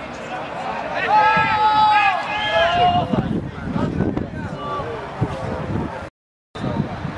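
Men shout and argue close by, outdoors.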